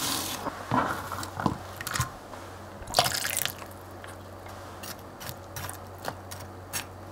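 Onion slices rustle as they drop into a glass bowl of water.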